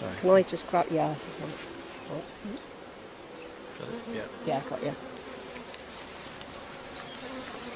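Bees buzz around the hive frame.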